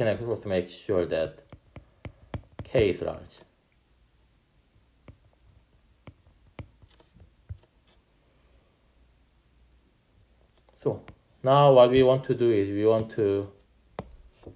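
A stylus taps and scratches on a glass tablet.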